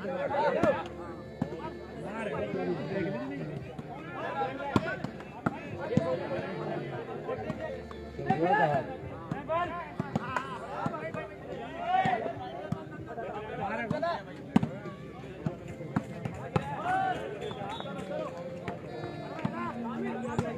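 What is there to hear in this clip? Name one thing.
Young men shout calls to each other during play.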